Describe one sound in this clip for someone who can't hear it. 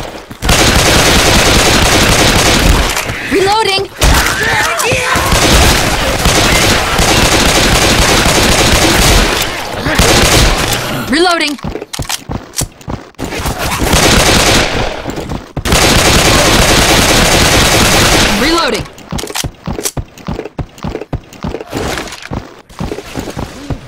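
A pistol fires in rapid shots.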